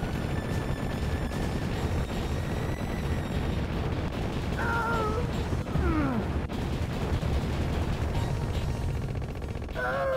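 Explosions boom and rumble repeatedly.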